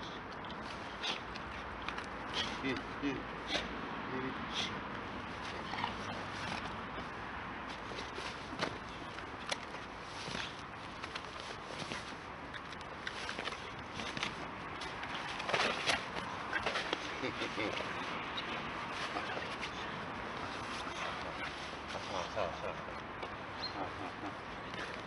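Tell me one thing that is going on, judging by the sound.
A man calls out to a dog.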